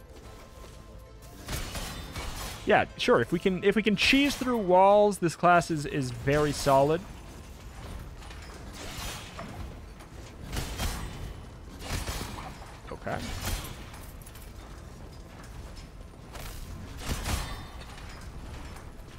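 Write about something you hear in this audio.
Game weapons swish and strike with sharp impacts.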